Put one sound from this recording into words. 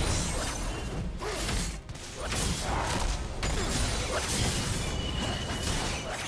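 Magic blasts and clashing weapons crackle and whoosh in a busy fight.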